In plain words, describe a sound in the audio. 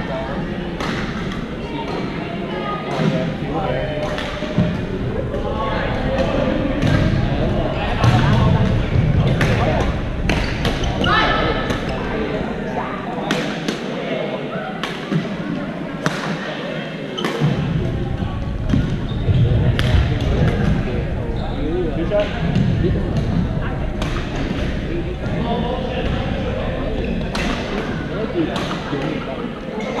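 Shuttlecocks are struck with rackets in sharp taps, echoing in a large hall.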